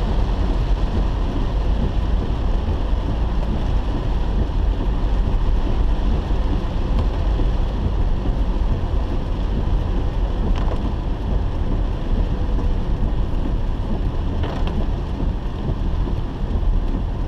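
Rain patters on a car's windscreen.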